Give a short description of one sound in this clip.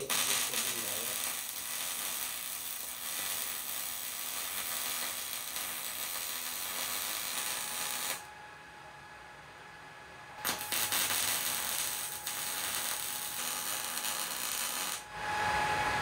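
An arc welder crackles and hisses steadily.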